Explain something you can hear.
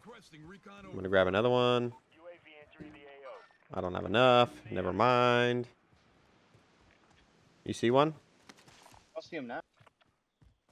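A young man talks animatedly and close into a microphone.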